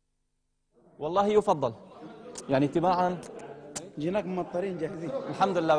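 Several men talk with animation nearby.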